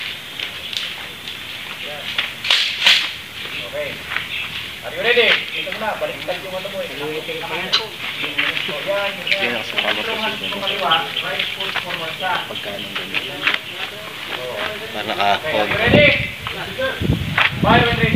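A man talks with animation nearby outdoors.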